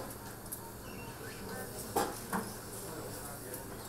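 Metal surgical instruments clink softly.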